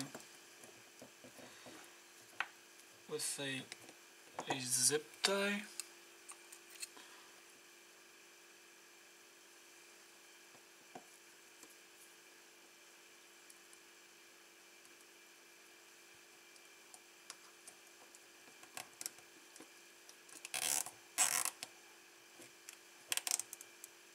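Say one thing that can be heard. Thin wires rustle and click softly as they are twisted by hand.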